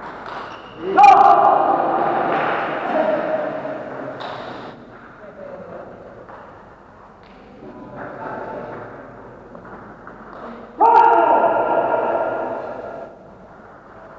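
A man shouts loudly in an echoing hall.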